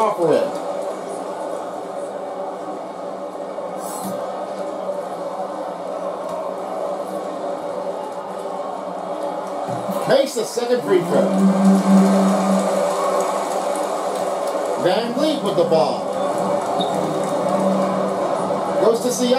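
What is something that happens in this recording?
A crowd cheers steadily in a large arena, heard through a television speaker.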